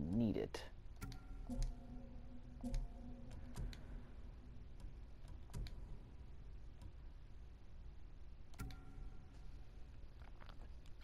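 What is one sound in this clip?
Short soft chimes sound as menu choices change.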